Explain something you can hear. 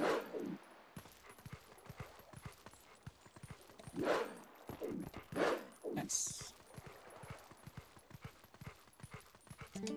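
Horse hooves thud rapidly on soft ground.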